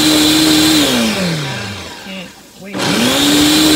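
A blender winds down to a stop.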